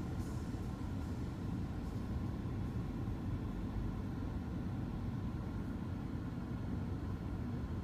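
A car rumbles low and steady while driving.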